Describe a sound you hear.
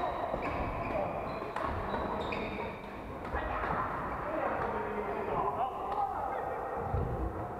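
The sound echoes around a large hall.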